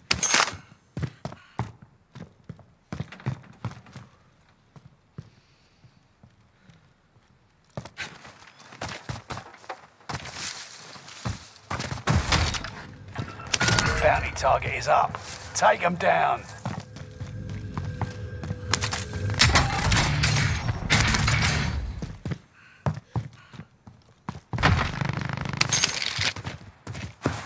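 Footsteps thud on wooden floors.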